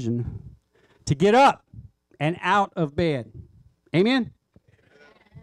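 A man speaks loudly with animation.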